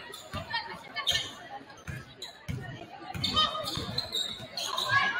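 A crowd murmurs and cheers in the stands.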